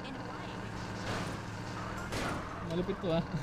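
Cars crash and scrape together.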